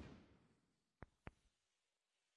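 A cue strikes a snooker ball with a soft click.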